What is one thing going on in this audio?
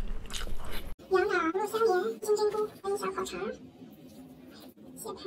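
Broth bubbles in a hot pot.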